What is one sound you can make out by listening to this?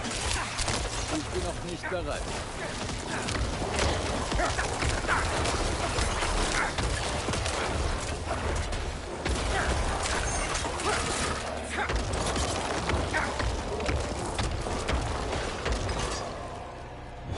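Magic blasts crackle and burst in a fast fight.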